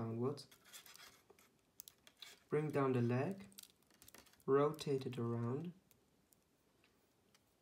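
Small plastic toy parts click and snap softly as they are fitted together.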